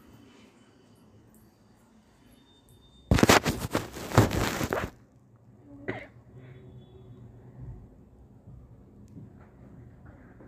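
Fabric rustles as hands move it.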